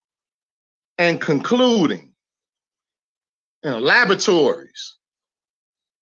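A man speaks animatedly over an online call, in two short bursts.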